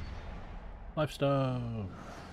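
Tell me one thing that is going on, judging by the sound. A man exclaims with animation close to a microphone.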